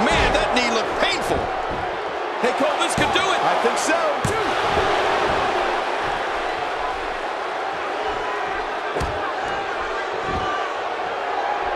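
A large crowd cheers and shouts loudly throughout.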